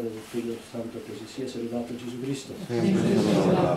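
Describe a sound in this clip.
A man chants steadily in a calm, sung voice.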